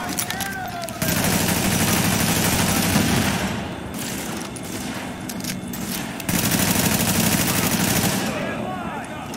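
Automatic gunfire rattles loudly in long rapid bursts.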